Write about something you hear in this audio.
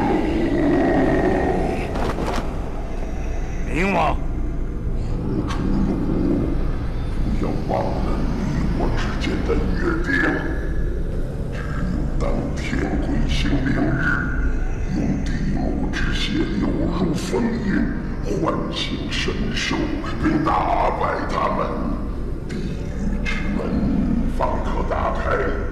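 A man speaks slowly and gravely in a deep voice.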